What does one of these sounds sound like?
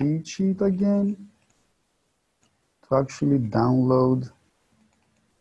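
A man speaks calmly and close to a microphone.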